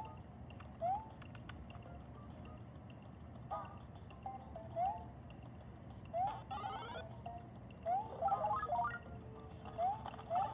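A handheld game console plays electronic sound effects with short rising jump chimes.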